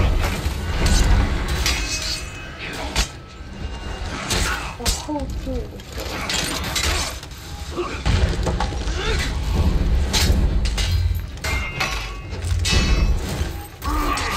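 Metal swords clash and clang in a fierce fight.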